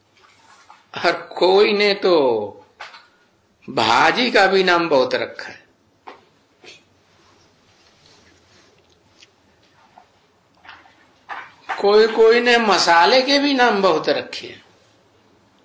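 An elderly man speaks into a microphone in short bursts with long pauses.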